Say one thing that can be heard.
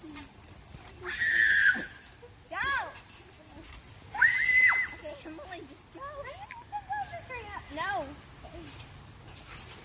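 Young girls shout and squeal outdoors.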